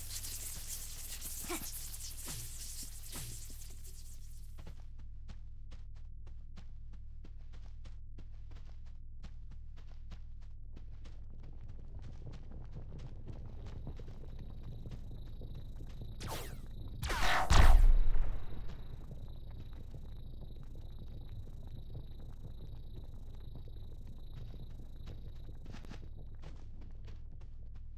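Footsteps patter quickly on sand.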